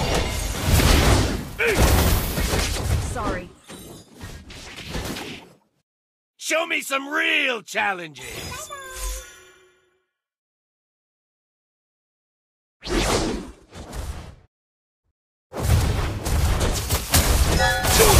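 Video game battle effects clash, crackle and boom in quick bursts.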